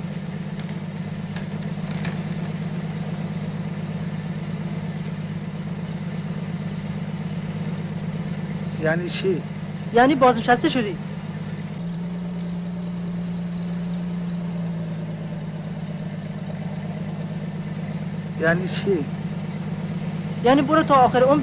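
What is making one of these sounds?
A bus engine drones steadily.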